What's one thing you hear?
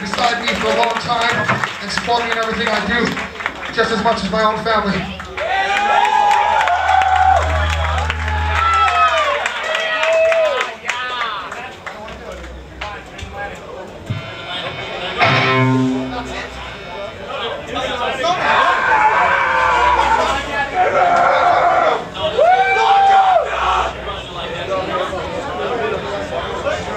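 A man sings and shouts into a microphone.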